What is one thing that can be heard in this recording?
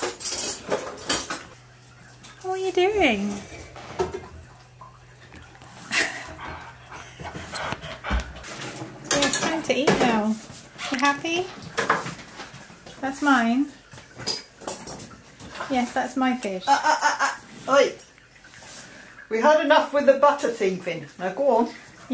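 A dog makes whining, talking howls that rise and fall in pitch, close by.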